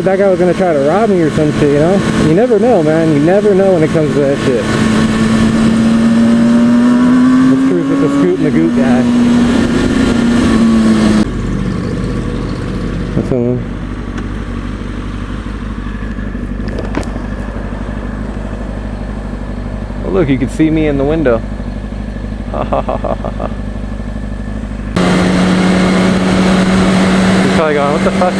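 A motorcycle engine hums loudly while riding.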